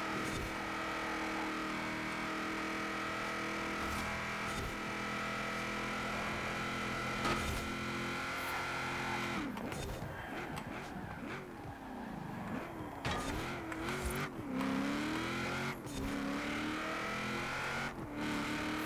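A truck engine roars at high speed, then drops and revs up and down through the gears.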